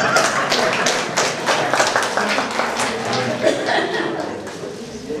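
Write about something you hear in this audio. An audience claps their hands.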